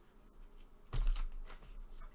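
A plastic card case is set down with a soft knock.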